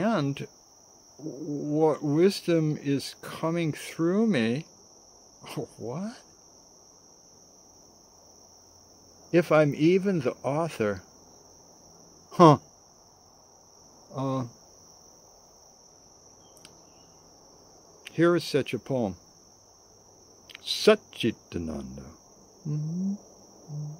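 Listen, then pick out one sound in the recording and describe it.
An elderly man speaks calmly and close to the microphone, with long pauses.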